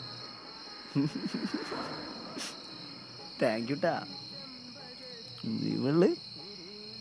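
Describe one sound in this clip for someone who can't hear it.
A young man laughs softly nearby.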